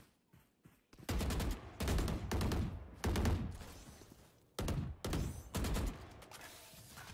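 Rapid gunshots fire in a game.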